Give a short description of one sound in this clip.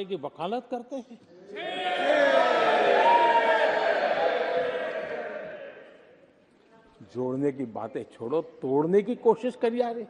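An elderly man speaks forcefully into a microphone in a large hall.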